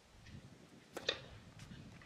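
A tennis racket strikes a ball on a serve.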